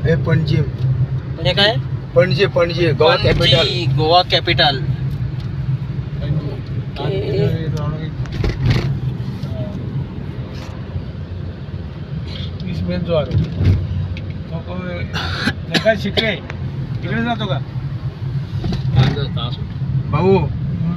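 A car's engine and tyres rumble steadily on a road, heard from inside.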